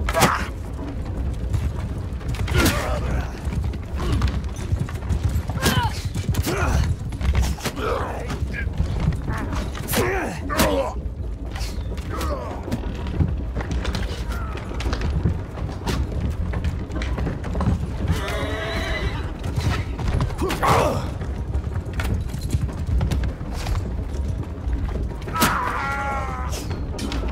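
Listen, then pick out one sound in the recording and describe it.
A heavy wooden battering ram rumbles and creaks as it rolls along.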